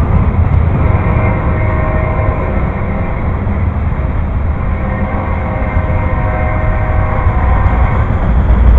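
Train wheels squeal faintly against the rails.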